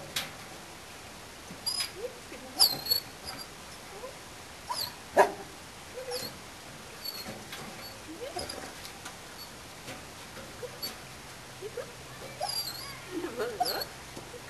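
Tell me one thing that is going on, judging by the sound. Material scrapes and clatters into a metal wheelbarrow.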